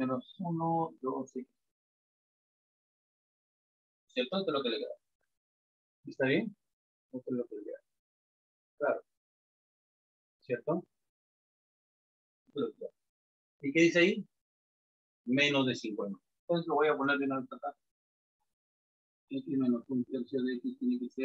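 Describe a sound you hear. A man explains calmly in short bursts, close by.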